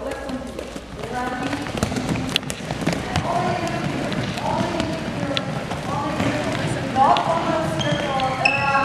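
Sneakers squeak on the floor as players run.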